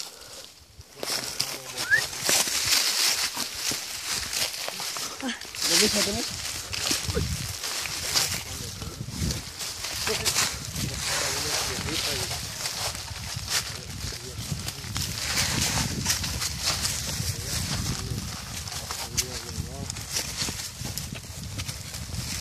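Dry leaves and brush crunch and rustle underfoot.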